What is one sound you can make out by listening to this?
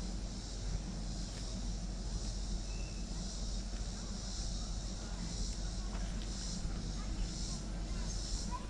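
Wind rustles through leafy bushes and trees.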